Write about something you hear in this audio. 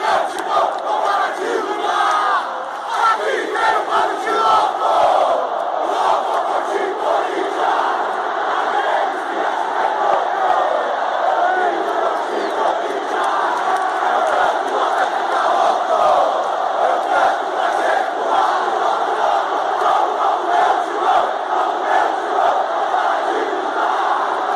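A large crowd of men sings and chants loudly in a big open stadium.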